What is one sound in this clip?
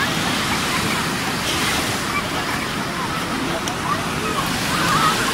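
Waves wash steadily onto the shore outdoors.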